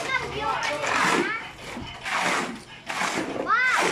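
A shovel scrapes through wet cement.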